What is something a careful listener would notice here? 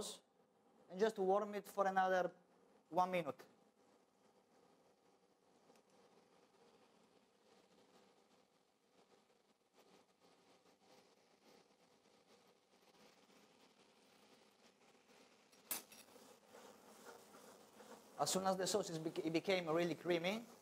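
Butter sizzles softly in a frying pan.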